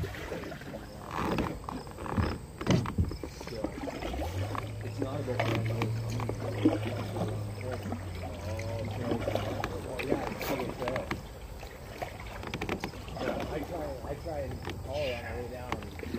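Water laps softly against a kayak hull.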